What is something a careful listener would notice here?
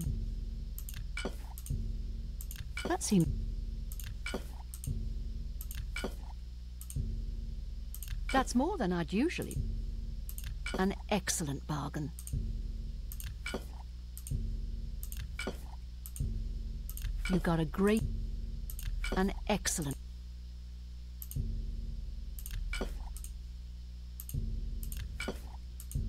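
Soft interface clicks sound again and again.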